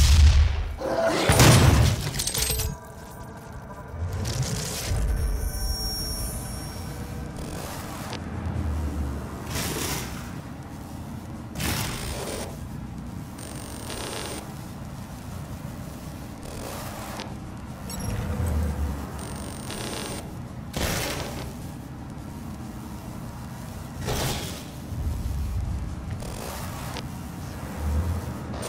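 A shotgun fires loud blasts with deep booms.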